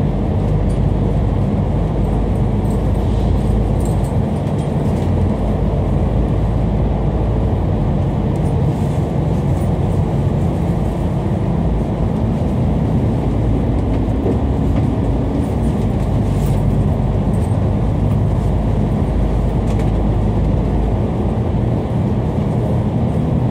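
Traffic roars and echoes around inside a tunnel.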